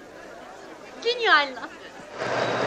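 A young woman calls out with surprise.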